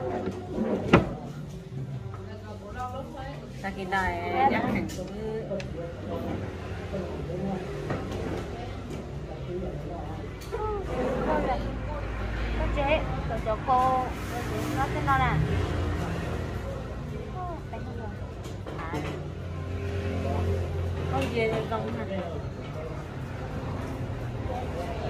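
Young women talk and laugh nearby.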